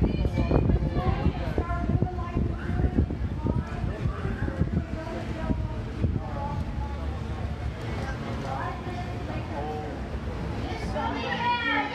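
A woman speaks loudly to a crowd outdoors.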